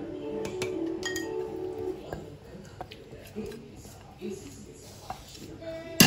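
A spoon scrapes against a bowl.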